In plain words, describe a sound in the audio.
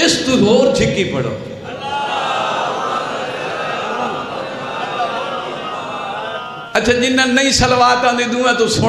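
A middle-aged man chants loudly into a microphone.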